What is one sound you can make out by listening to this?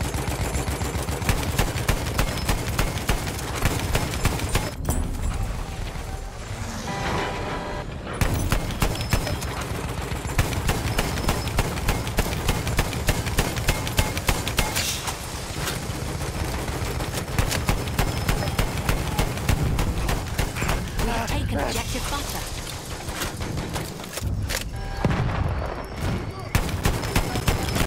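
A heavy gun fires in rapid, repeated booming bursts.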